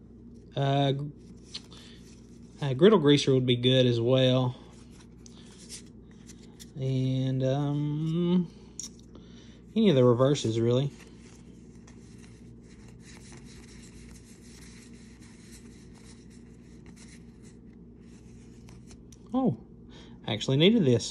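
Playing cards rustle and slide as they are shuffled by hand.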